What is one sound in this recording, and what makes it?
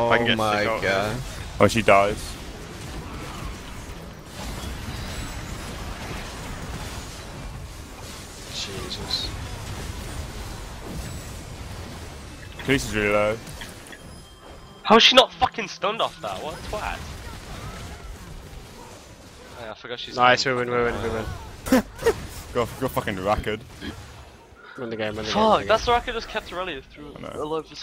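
Video game battle effects crackle and clash.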